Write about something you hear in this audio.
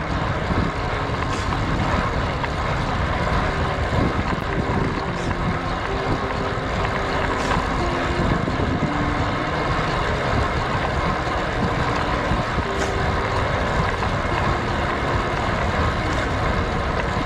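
Road bike tyres hum on asphalt.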